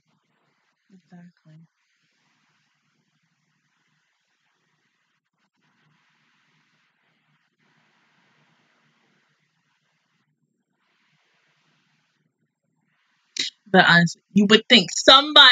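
A young woman speaks close by, first briefly and quietly, then loudly and with animation.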